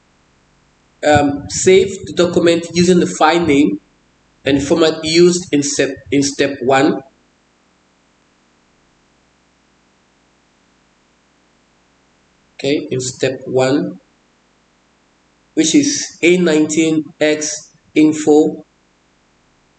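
A man speaks calmly and clearly into a microphone, with pauses.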